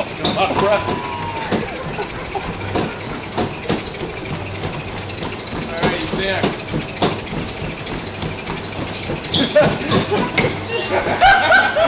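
Running feet thump quickly on a treadmill belt.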